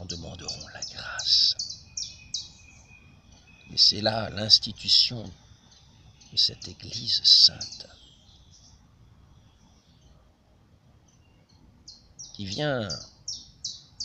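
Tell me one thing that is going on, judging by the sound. An elderly man speaks close by, with animation.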